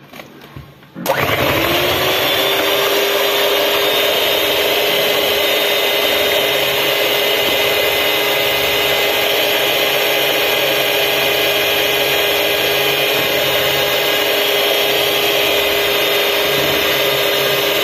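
A hand mixer whirs steadily as its beaters churn in a bowl.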